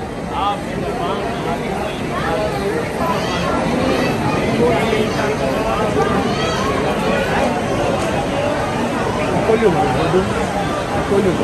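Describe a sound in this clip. A large crowd of men murmurs and chatters nearby outdoors.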